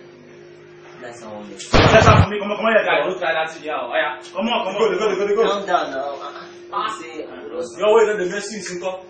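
Young men talk and shout with animation close by.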